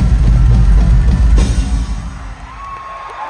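Drums and cymbals pound loudly in a large live hall.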